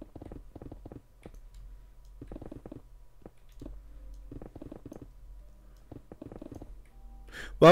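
A pickaxe chips at stone with repeated dull knocks.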